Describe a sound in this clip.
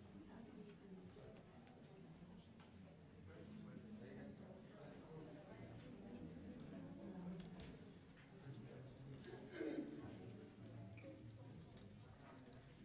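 A crowd of men and women sings together softly.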